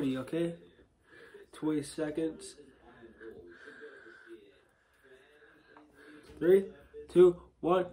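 A banana peel tears as a boy peels it.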